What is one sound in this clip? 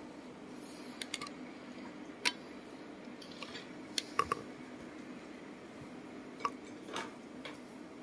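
Plates and cutlery clink softly on a table.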